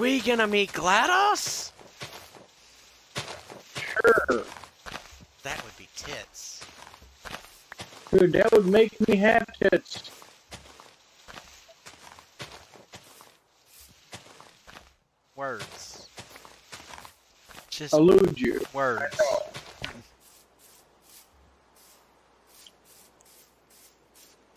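Footsteps rustle softly on grass.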